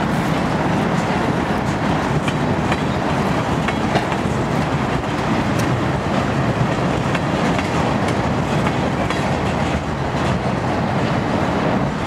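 Freight cars roll past with a steady rumble of steel wheels on rails.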